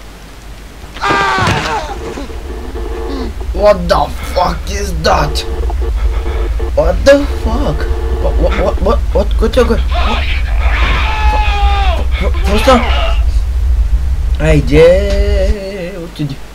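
A man groans and cries out in distress close by.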